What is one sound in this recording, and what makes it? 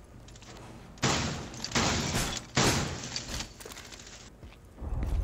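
Wooden boards crash and splinter loudly in bursts.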